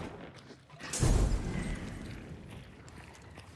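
A fire bursts into flames and crackles loudly.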